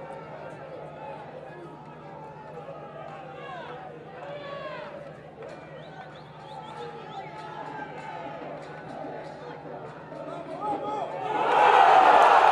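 A large crowd murmurs and whistles in an open stadium.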